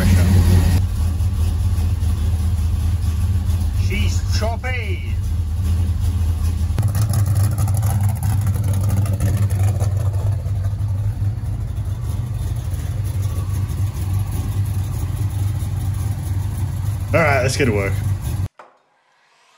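A car engine idles with a deep, steady rumble.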